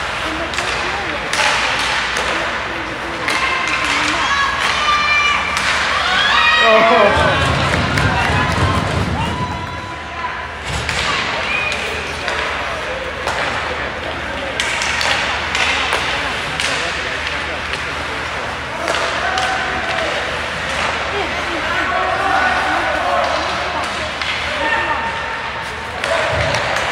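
Spectators in the stands call out and cheer.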